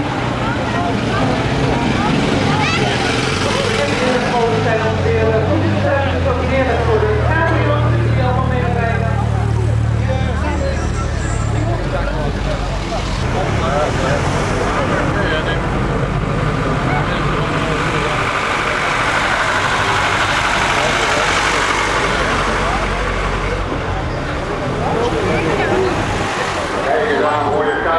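A crowd of men, women and children chatters nearby outdoors.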